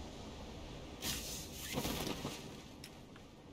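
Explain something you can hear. A parachute snaps open with a loud whoosh.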